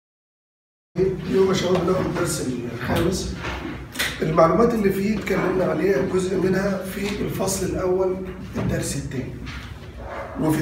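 A man lectures with animation, close by in an echoing room.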